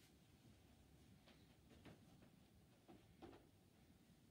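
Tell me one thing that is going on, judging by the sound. Cloth rustles and knocks softly as a man sits down close by.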